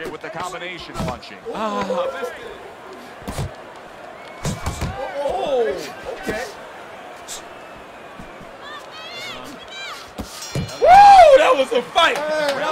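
Two young men talk and shout excitedly close to a microphone.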